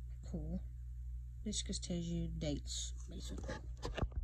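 A paper card rustles as a hand handles it.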